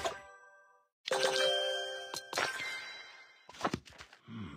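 A bright chiming jingle plays.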